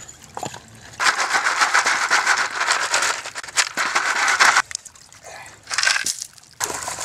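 Water sloshes and splashes in a pan.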